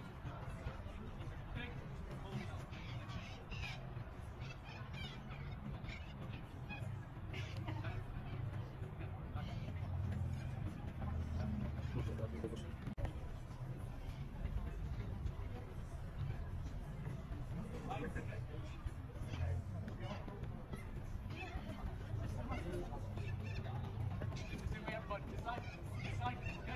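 Footsteps of young men shuffle and patter on grass.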